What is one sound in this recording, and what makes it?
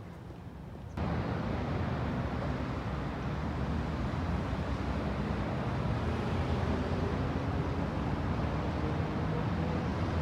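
Traffic rumbles steadily along a nearby road.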